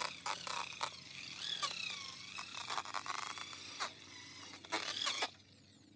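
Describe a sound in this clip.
An electric polisher whirs, its pitch wavering as the pad presses against a surface.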